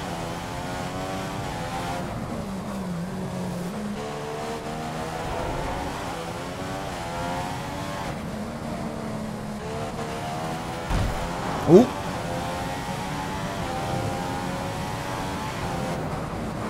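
A racing car engine roars loudly, rising and falling in pitch as it speeds up, brakes and shifts gears.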